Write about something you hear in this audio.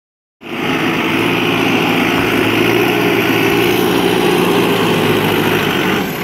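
A diesel engine of a backhoe loader rumbles loudly and steadily up close.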